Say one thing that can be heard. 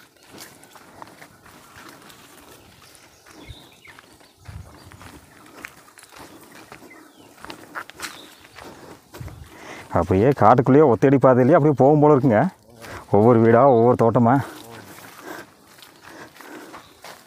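Footsteps crunch on a dry dirt path.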